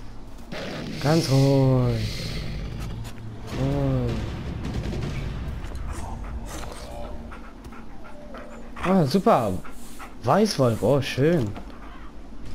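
A wolf whines and growls close by.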